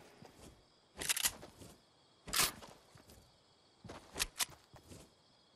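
Gunshots ring out in loud single bursts.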